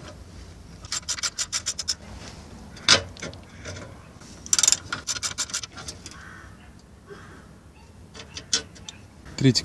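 A ratchet wrench clicks rapidly as a bolt is turned.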